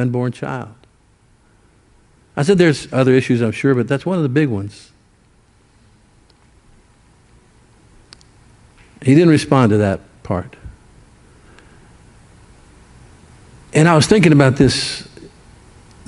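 An older man speaks slowly and with emphasis through a microphone, in bursts separated by long pauses.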